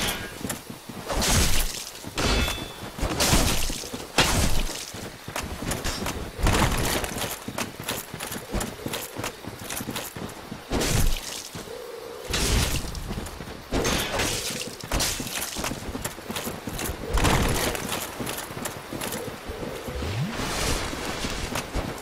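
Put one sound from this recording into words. A sword swings with heavy whooshes and strikes.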